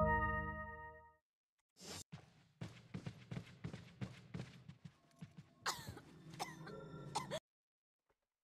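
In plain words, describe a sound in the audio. Game music and sound effects play.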